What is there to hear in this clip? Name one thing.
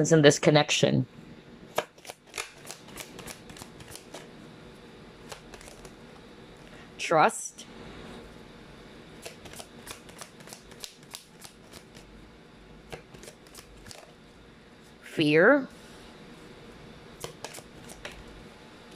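Cards shuffle and riffle softly.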